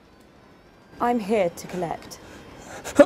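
A young woman speaks sharply nearby.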